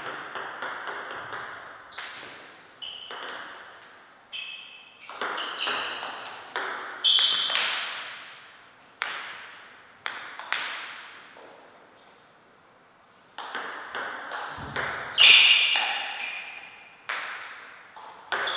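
A table tennis ball clicks back and forth between paddles and the table in an echoing hall.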